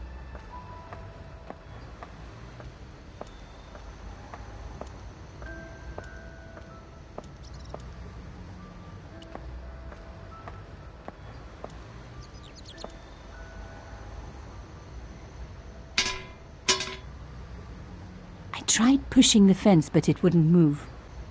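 Footsteps tap lightly on stone.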